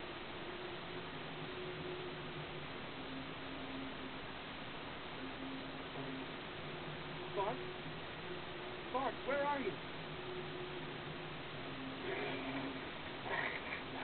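Soft, steady video game music plays throughout.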